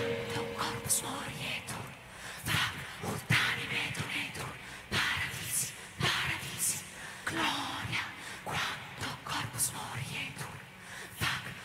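A choir of women make rhythmic, breathy percussion sounds with their voices close to microphones.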